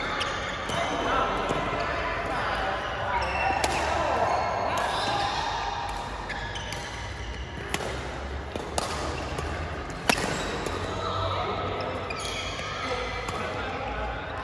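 Badminton rackets strike a shuttlecock with sharp pops, echoing in a large hall.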